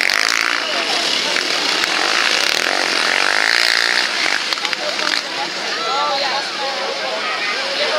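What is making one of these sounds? Quad bike engines roar and whine as they race past.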